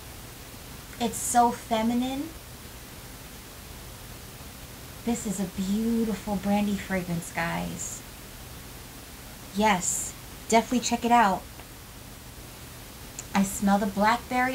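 A young woman talks calmly and closely, in short bursts.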